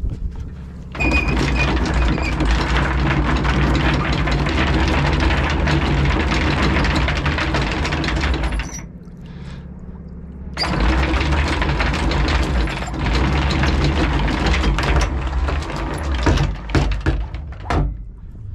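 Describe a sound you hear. An anchor chain rattles steadily as it runs out over a boat's bow, pausing briefly partway through.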